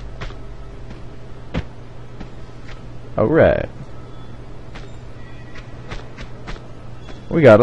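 Quick footsteps tap on a hollow floor.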